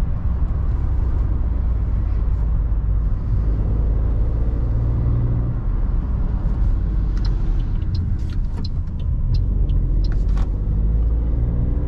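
A small car engine hums steadily while driving.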